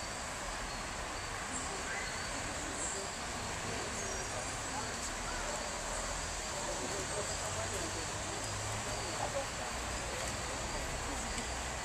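People talk quietly in the background.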